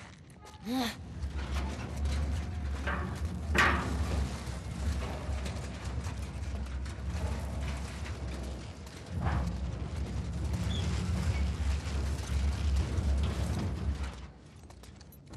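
A heavy metal bin scrapes and rumbles as it is pushed across a concrete floor.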